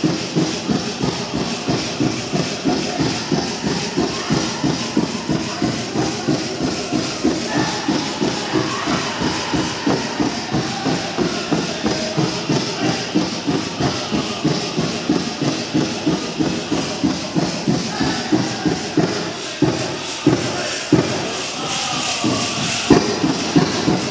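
Metal jingles on dancers' dresses shake and rattle in a steady, quick rhythm.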